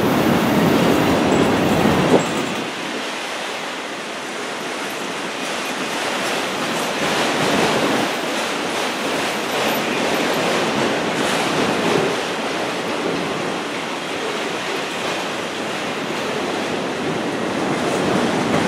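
A long freight train rolls past close by, its wheels rumbling and clattering on the rails.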